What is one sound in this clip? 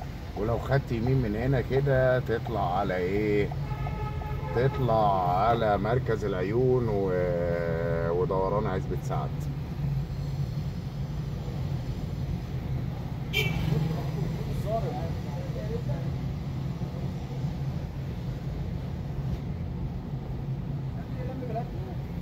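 Traffic rumbles along a busy street.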